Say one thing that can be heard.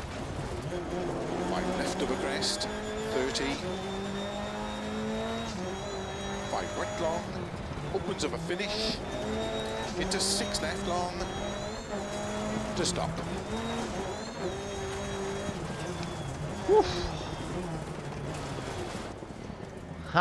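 A rally car engine revs hard, rising and falling as it changes gear.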